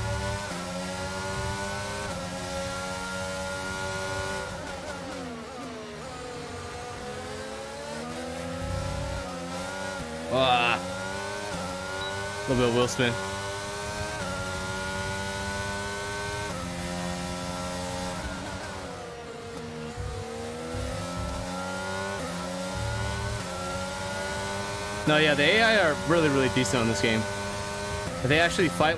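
A racing car engine whines, rising and falling in pitch as it shifts gears.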